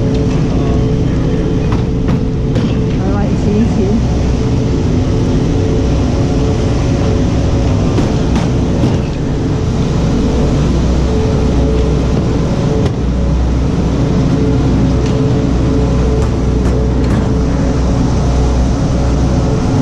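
Wind blows hard across a helmet microphone outdoors.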